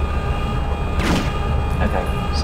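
A single gunshot rings out.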